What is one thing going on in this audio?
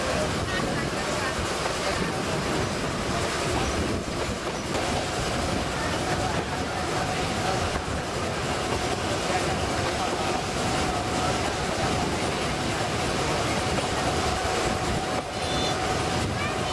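A small train rumbles and clatters steadily along its track.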